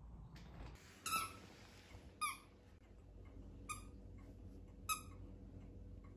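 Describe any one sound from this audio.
A squeaky toy squeaks several times as a dog bites it.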